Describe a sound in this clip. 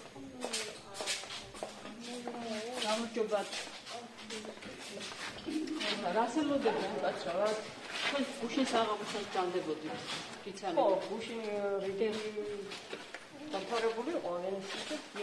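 Several women talk with animation close to a microphone.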